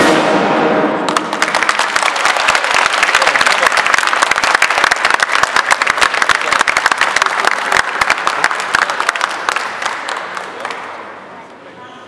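A crowd applauds loudly.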